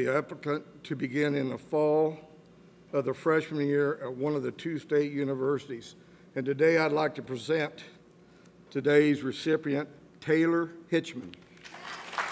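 An elderly man speaks calmly into a microphone, heard through a loudspeaker in a hall.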